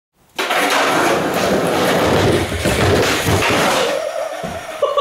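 Skateboard wheels roll loudly over a wooden ramp.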